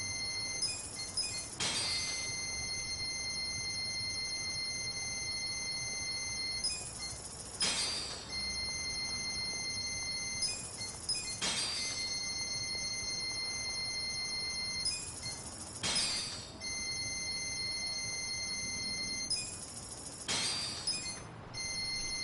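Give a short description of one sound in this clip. Game menu sounds click and chime as purchases are made.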